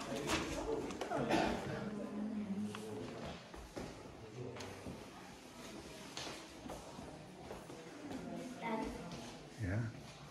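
Footsteps walk across a wooden floor.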